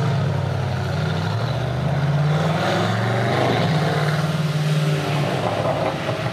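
A car engine revs up and roars as the car drives away.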